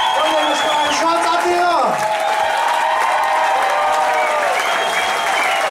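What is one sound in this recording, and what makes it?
An audience claps hands.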